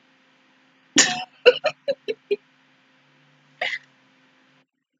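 A young woman laughs in short bursts close to a microphone.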